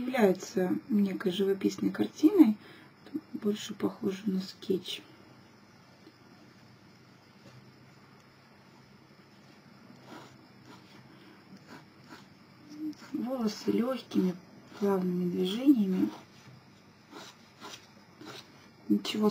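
A pen scratches lightly across paper.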